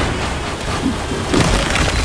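Ice shatters with a sharp crash.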